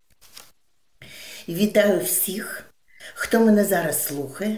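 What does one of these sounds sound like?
An elderly woman speaks with animation through an online call.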